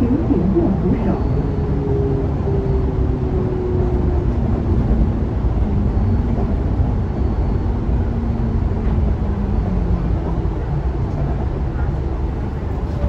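A bus engine's whine slowly falls in pitch as the bus slows down.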